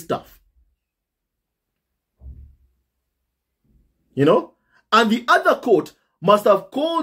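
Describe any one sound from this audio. A young man speaks with animation close to a microphone, in bursts with pauses.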